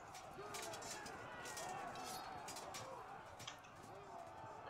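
Swords and armour clash in a battle.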